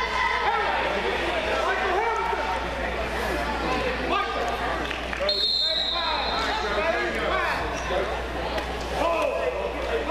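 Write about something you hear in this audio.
A crowd of spectators chatters and calls out, echoing in a large hall.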